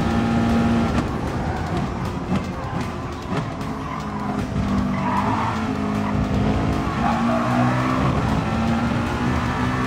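A racing car engine drops in pitch as the car slows and then revs up again.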